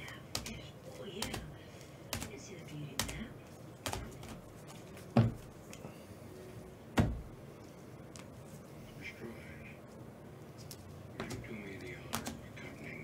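Hard plastic card cases click and tap as they are handled.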